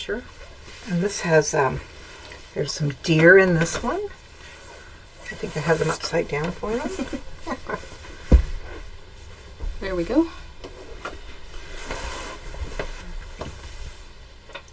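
Cloth rustles as fabric bolts are handled.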